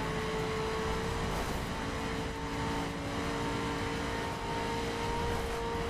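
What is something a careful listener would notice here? Wind rushes past a speeding car.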